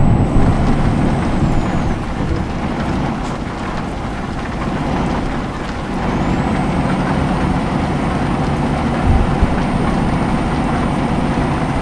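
A truck engine hums low and steady while driving.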